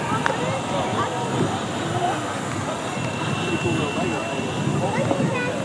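Vapour hisses softly from a model rocket.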